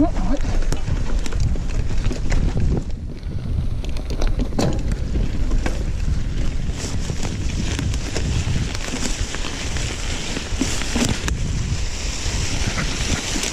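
Wind rushes loudly past a moving bike rider.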